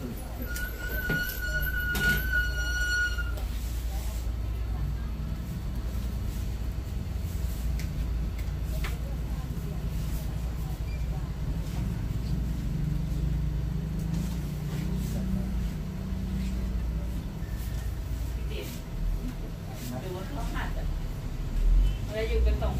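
A straight razor scrapes softly across stubble on skin.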